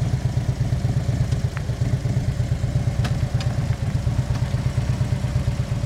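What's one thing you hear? A motorcycle engine idles with a deep, steady, throbbing rumble close by.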